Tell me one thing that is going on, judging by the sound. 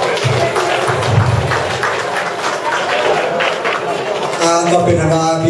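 A man speaks through a microphone over loudspeakers in an echoing hall.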